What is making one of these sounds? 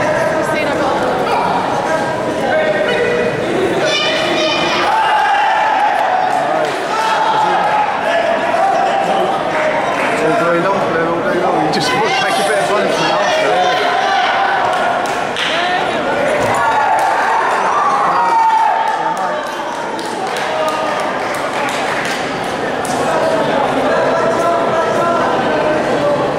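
A crowd cheers and shouts throughout a large echoing hall.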